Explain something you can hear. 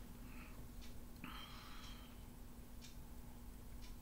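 A man gulps a drink of water.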